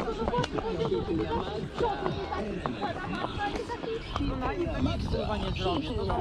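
Horse hooves clop steadily on a paved road.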